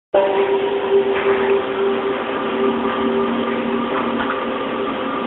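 Eerie, droning music plays from a television speaker.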